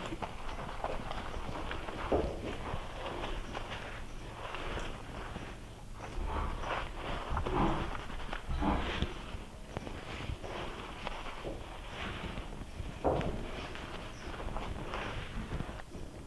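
A man squeezes soapy water from a horse's tail.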